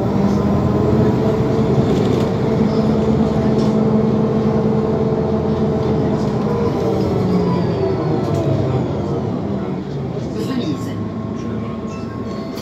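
Cars pass by close on the street.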